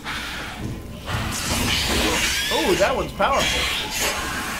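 Flames roar up with a burst.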